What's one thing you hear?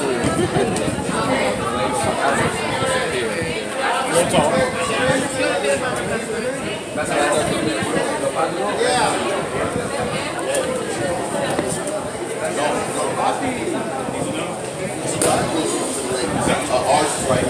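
Several men and women talk over one another nearby, with an echo in the room.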